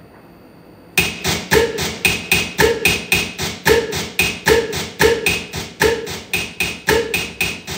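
Harsh electronic noise pulses quickly and steadily through a loudspeaker.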